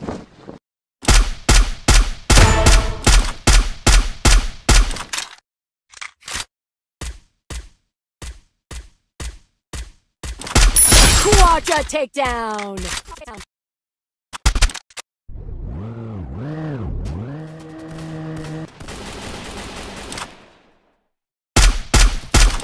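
Rifle shots crack in rapid bursts.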